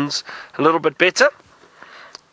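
A man speaks briefly and clearly close by.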